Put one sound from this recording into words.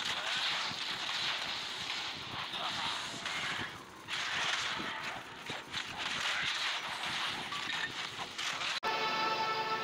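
Game combat sounds of blows and magic blasts crash rapidly.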